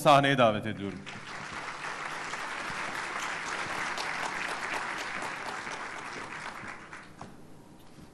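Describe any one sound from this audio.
An audience applauds in a large hall, then the clapping fades away.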